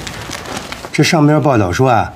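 A man answers calmly, close by.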